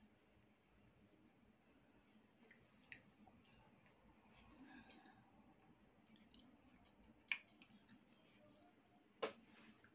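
A spoon clinks against a plate.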